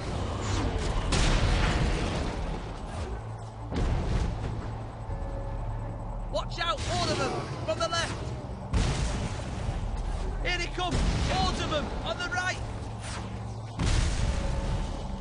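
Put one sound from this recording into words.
Mortar shells explode with deep, rumbling booms.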